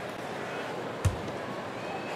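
A basketball bounces once on the court.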